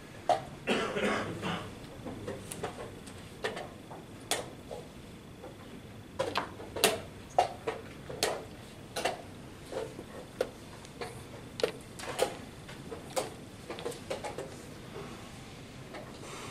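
A chess clock button is tapped.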